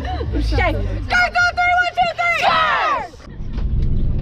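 Young women shout and cheer together.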